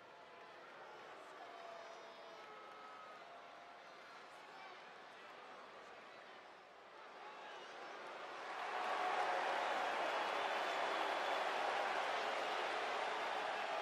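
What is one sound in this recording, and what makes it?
A large crowd cheers in a big echoing arena, swelling to a loud roar.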